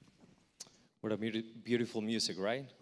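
A man speaks calmly into a microphone, heard over loudspeakers in a large echoing hall.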